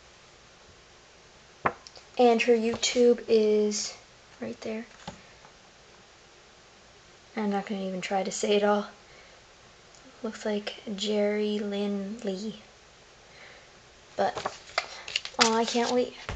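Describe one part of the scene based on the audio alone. Paper rustles as a card is handled.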